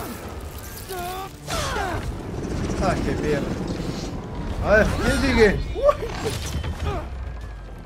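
A young man talks with animation through a microphone, close up.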